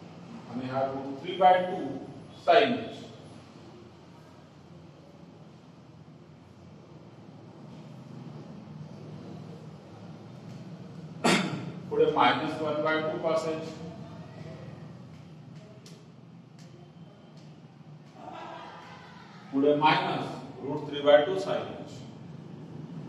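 A man speaks calmly, pausing between phrases.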